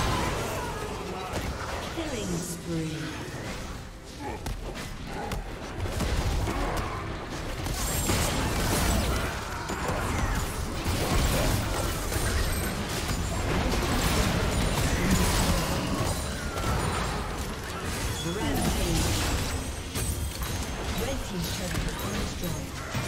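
Magic blasts, hits and whooshes clash in a busy video game battle.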